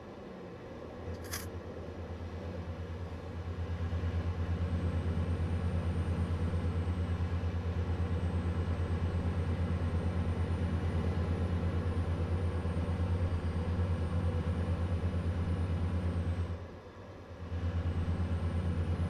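A truck's diesel engine drones steadily, with a brief dip before picking up again.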